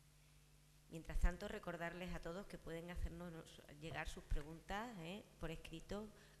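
A middle-aged woman speaks calmly into a microphone over loudspeakers in a large hall.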